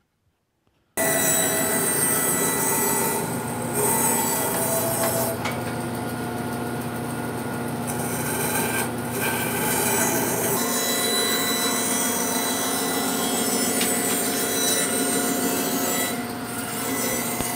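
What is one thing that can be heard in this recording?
A band saw whirs loudly as it cuts through wood.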